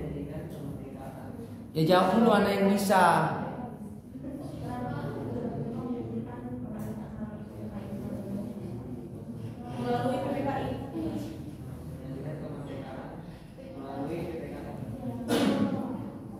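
A young woman reads aloud and speaks to a room.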